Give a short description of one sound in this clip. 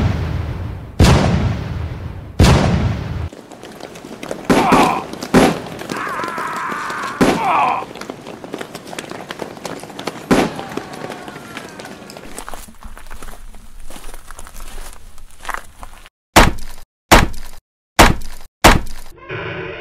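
Muskets fire in sharp, rapid shots.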